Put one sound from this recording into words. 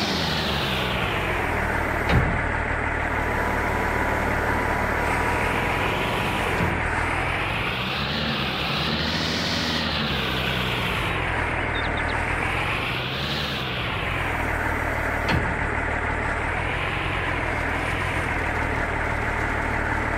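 A diesel loader engine drones steadily, revving up and down as the loader works.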